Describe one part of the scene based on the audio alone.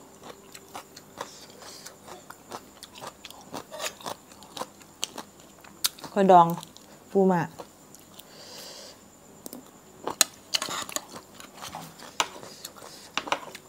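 Shells crack and snap close up as food is picked apart by hand.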